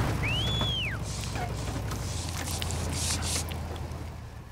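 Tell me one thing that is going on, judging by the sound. Leafy bushes brush and rustle against a passing motorcycle.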